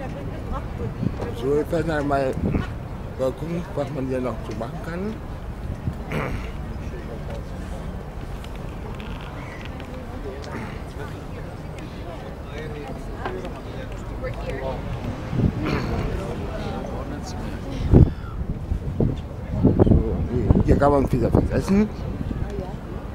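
A man talks close to the microphone, calmly.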